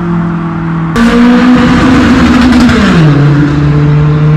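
A car rushes past close by.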